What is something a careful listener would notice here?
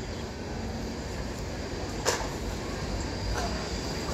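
A bus drives up along the street.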